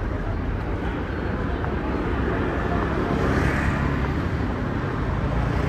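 Motorbikes ride past close by, engines humming.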